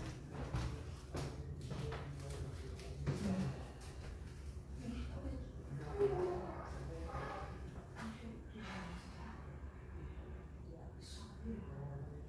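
A clarinet plays soft, breathy notes.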